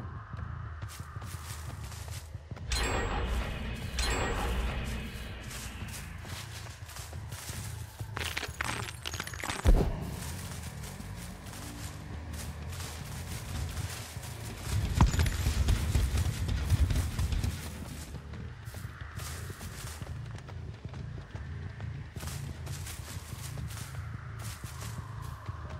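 Footsteps crunch through grass and undergrowth.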